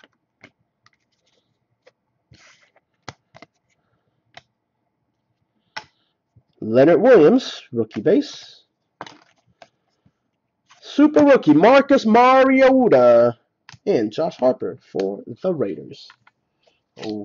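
Trading cards click and rustle as they are flipped through by hand.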